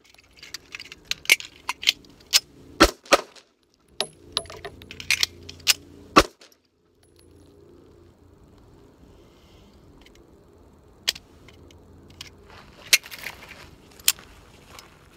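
A pistol fires rapid shots outdoors.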